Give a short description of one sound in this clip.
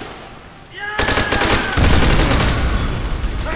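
A rifle fires rapid shots close by.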